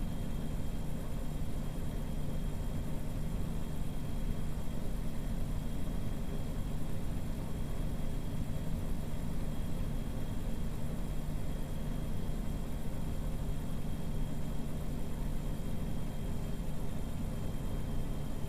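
Tyres roll on the road with a steady hiss.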